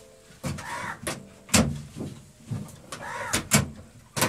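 A metal door clanks.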